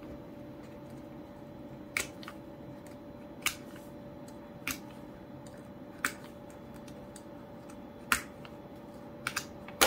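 A craft knife scratches and ticks along paper.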